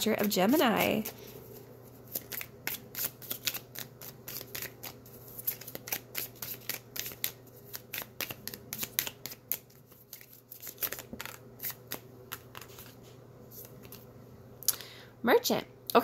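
Playing cards are shuffled by hand with quick, light flicking clicks.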